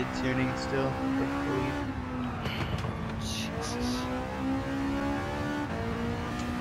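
A racing car engine roars, revving up and shifting through the gears.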